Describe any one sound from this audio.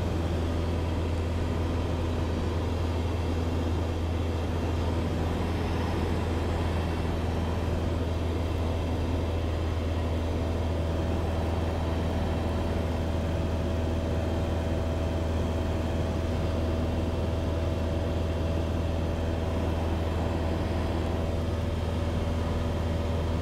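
A small plane's engine drones steadily and loudly from inside the cabin.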